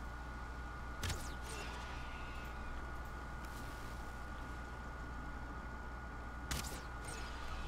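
A bow string twangs as an arrow is shot.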